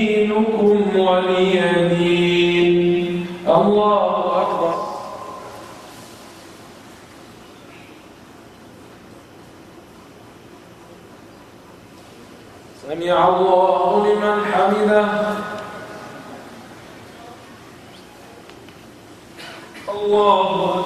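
A man chants slowly in long, drawn-out phrases through a microphone, echoing in a large hall.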